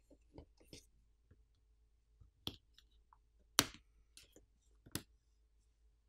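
Small plastic parts click and snap as they are pried loose.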